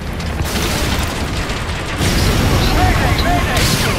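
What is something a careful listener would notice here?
A helicopter's rotor thumps and rumbles nearby.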